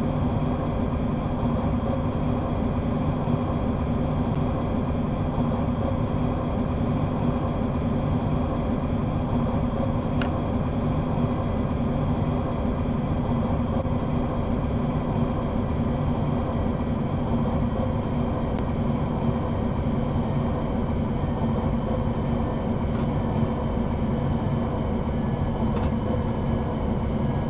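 A train's electric motor hums steadily as it runs along the track.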